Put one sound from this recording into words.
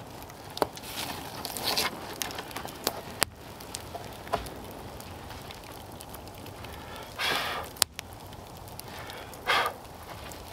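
A wooden board swishes through the air as it fans the fire.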